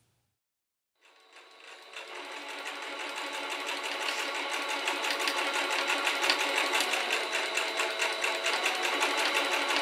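A sewing machine runs with a fast, steady rattle.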